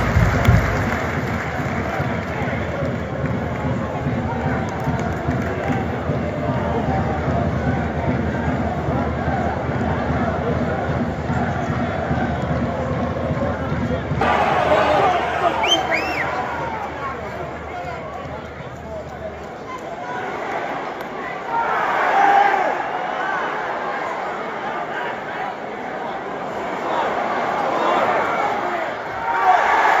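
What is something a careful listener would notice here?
A large football crowd chants and roars in an open stadium.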